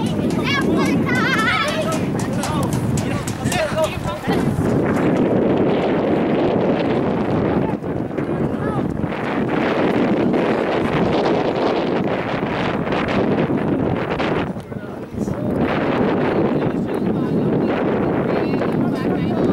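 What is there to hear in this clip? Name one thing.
Players call out to each other across an open field outdoors.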